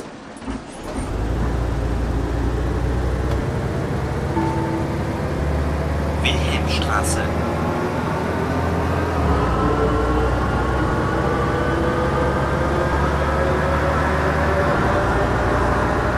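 A bus engine roars and rises steadily in pitch as the bus speeds up.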